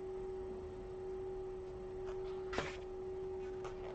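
A book page rustles as it turns.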